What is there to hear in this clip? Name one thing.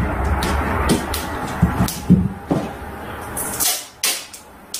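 Adhesive tape rips loudly as it is pulled off a roll.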